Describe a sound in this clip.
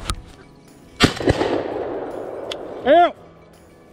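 A shotgun fires once, with the blast echoing through open woods.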